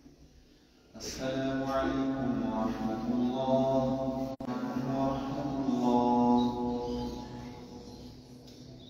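A young man chants in a melodic voice through a microphone in a large echoing hall.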